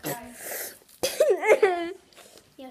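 A young girl shrieks loudly.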